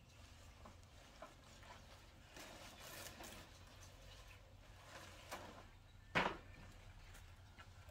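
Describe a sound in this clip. Leafy greens rustle as they are handled.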